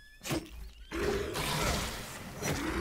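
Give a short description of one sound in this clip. A magic spell bursts with a loud whooshing hiss.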